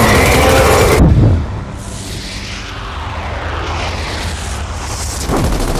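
A loud blast booms and rumbles away.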